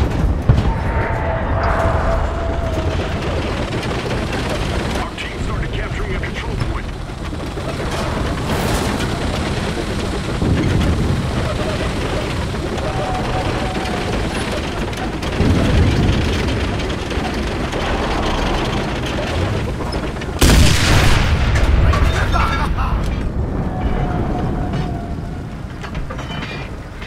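A tank engine rumbles deeply and steadily.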